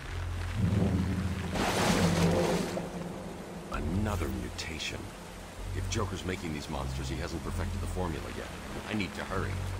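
Water rushes and splashes nearby.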